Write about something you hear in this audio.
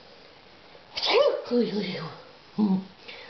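A man speaks close to a microphone, in a playful, expressive voice.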